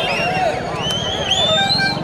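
A man shouts excitedly.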